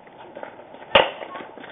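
A baseball smacks into a catcher's leather mitt.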